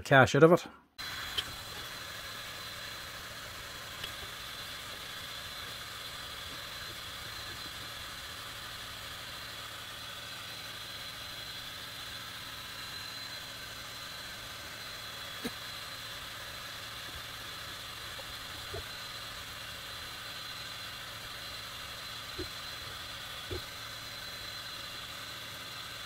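A laser engraver hums steadily as its fans run.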